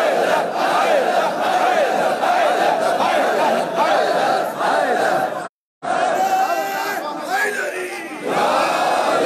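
A large crowd of men chants loudly in unison.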